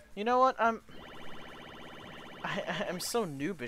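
Short electronic menu blips sound in quick succession.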